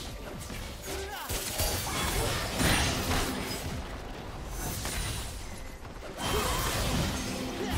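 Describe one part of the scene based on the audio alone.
Spell effects crackle and burst in a game fight.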